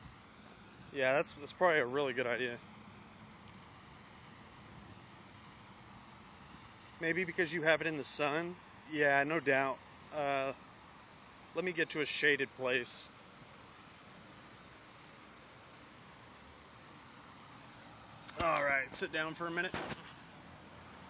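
A young man talks casually into a phone microphone, in bursts with pauses.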